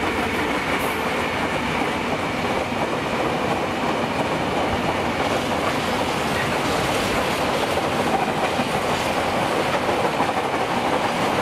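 A freight train rumbles past close by, wheels clattering steadily on the rails.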